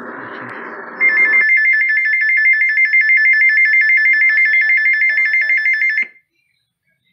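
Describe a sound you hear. A weather radio sounds a loud, steady, piercing alert tone.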